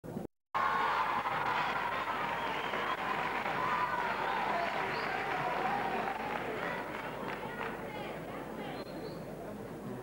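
A group of elderly women sings together, heard from a distance in a large hall.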